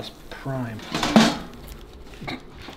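A pizza cutter rolls and crunches through a crust.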